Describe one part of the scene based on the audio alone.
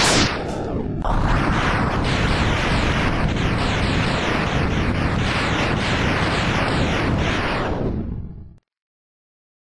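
Video game explosions burst in rapid succession.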